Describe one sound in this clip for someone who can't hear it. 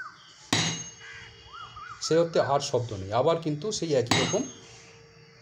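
A tuning fork rings with a faint, steady tone.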